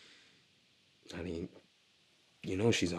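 A man speaks in a low, quiet voice.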